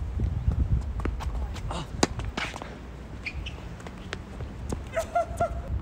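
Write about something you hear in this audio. Tennis racquets strike a ball back and forth with sharp pops.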